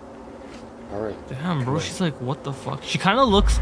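A young man exclaims in surprise close to a microphone.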